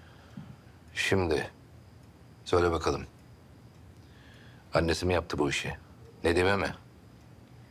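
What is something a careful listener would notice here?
A middle-aged man speaks tensely in short bursts, close by.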